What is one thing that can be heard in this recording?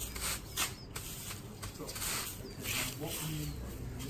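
Straw rustles and scrapes as a man works at a thatched roof.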